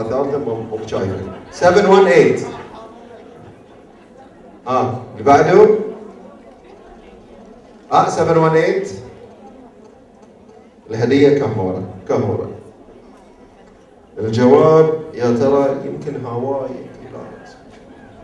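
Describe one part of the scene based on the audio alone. A man speaks with animation into a microphone over loudspeakers in a large echoing hall.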